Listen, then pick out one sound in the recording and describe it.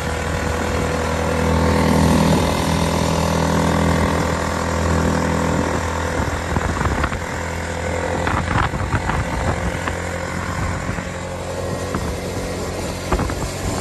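Wind rushes past a microphone outdoors.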